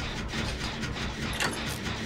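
A machine rattles and clatters steadily.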